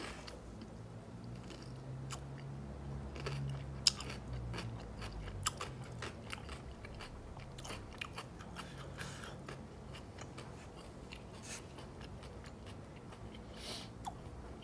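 A young man chews food with soft smacking sounds.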